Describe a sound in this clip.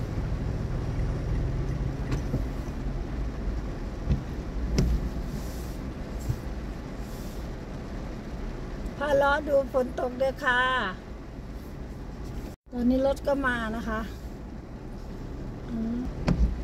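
Heavy rain patters steadily on a car window.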